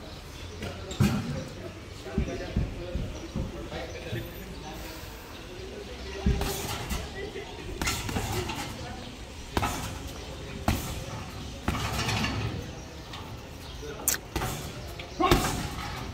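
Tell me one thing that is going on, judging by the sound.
Gloved punches thud heavily into a punching bag.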